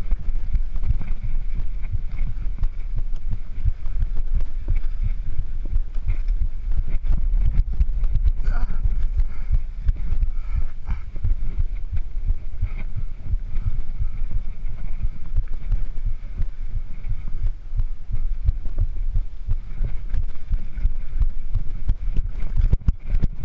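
Bicycle tyres crunch and rattle over a rough dirt trail.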